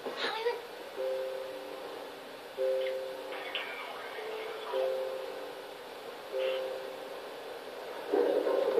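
Soft game music with gentle notes plays through a television's speakers.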